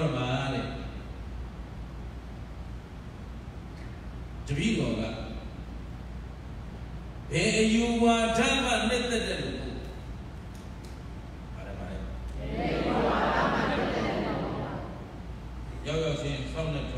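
A man chants in long, drawn-out phrases through a microphone in an echoing hall.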